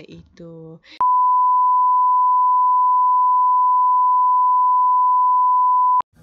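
A steady, high test tone sounds without a break.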